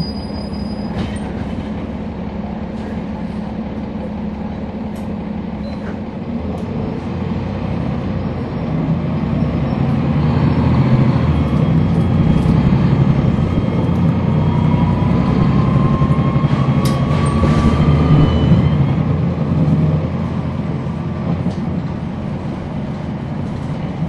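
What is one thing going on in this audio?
A bus engine rumbles and grows louder as the bus speeds up.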